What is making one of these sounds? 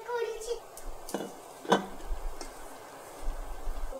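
Water bubbles as it boils in a pot.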